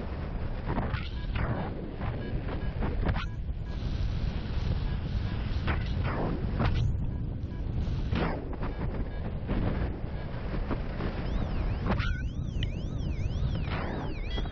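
Strong wind rushes and buffets loudly past a paraglider.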